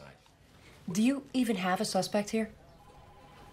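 A woman speaks tensely.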